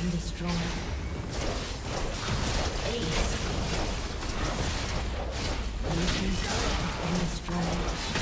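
Game spell effects crackle and burst in a fierce battle.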